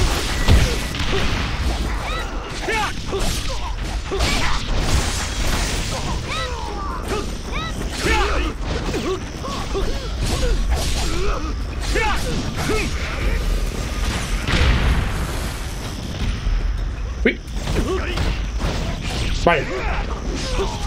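Swords slash and clang in quick bursts.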